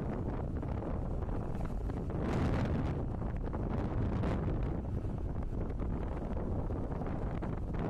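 Wind rushes past the microphone outdoors.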